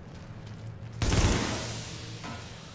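A gunshot bangs loudly and rings out.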